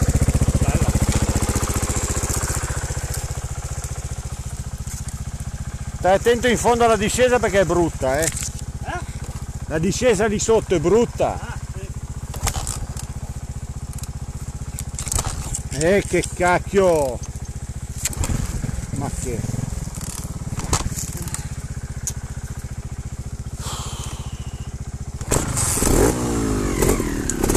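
A motorbike engine idles with a steady low putter.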